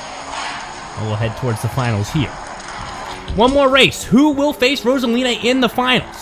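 Small toy cars roll and rattle down a metal track.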